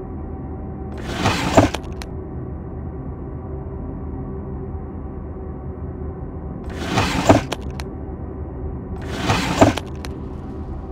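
A wooden drawer slides open and shut.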